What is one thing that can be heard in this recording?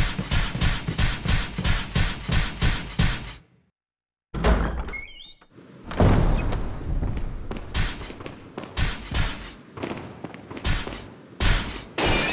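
Footsteps thud steadily.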